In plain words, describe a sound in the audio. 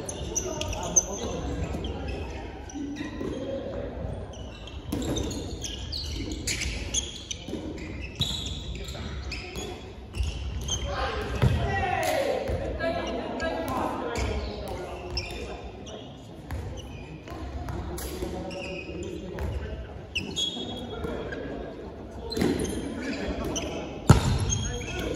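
A ball thuds as it is caught and thrown.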